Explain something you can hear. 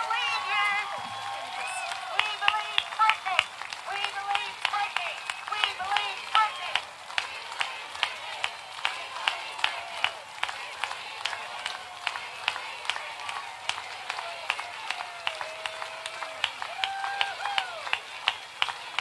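A large crowd cheers and whoops.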